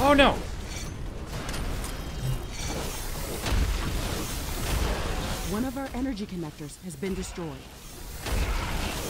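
Game explosions and weapon fire rumble and crackle.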